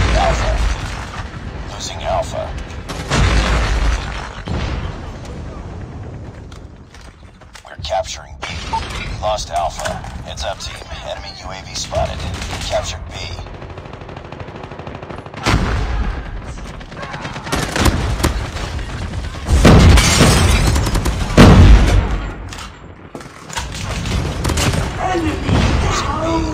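Gunshots crack in rapid bursts from a video game.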